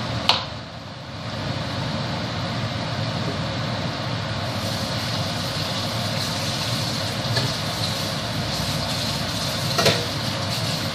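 A knife knocks against a cutting board.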